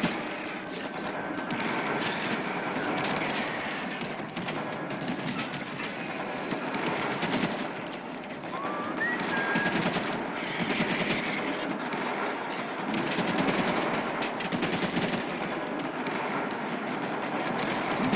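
Rifles fire in rapid bursts.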